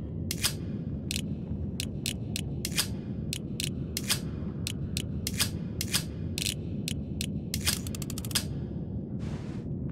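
A metal dial clicks as it turns.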